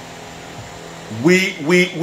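A young man speaks through an online call.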